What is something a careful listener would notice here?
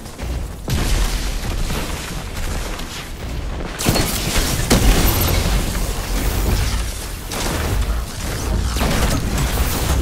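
Electric blasts crackle and burst in a video game.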